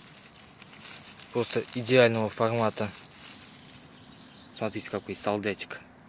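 Grass rustles as a mushroom is picked from the ground.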